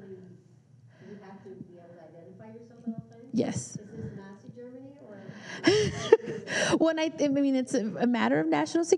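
A woman speaks calmly through a microphone in a room with some echo.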